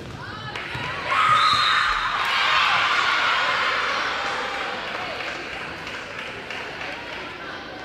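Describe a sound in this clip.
A crowd cheers loudly in an echoing gym, then dies down.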